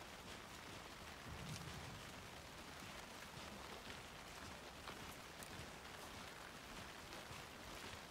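Wind rustles through trees outdoors.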